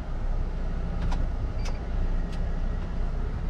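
Items rattle and click inside the cab as the truck drives.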